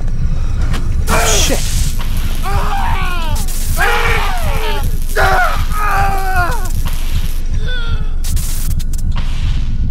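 Electric arcs crackle and buzz.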